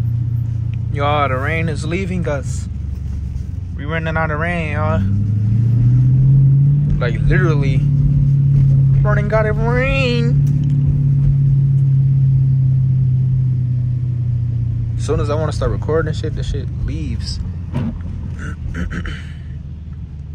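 A man speaks with animation close by, inside the car.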